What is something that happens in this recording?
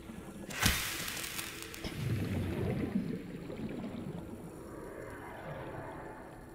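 Water gurgles and rumbles softly around a swimming diver.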